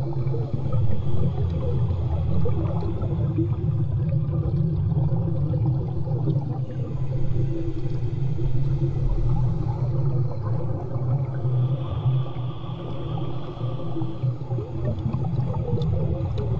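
Water rumbles and churns steadily, heard from underwater.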